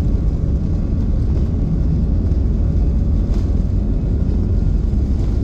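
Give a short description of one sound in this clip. A plane's engines roar steadily from inside the cabin.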